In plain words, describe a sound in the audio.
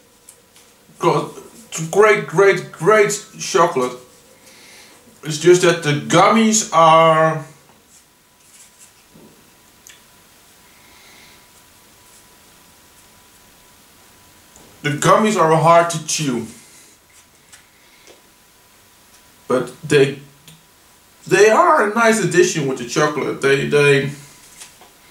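A young man talks close by, in bursts with pauses.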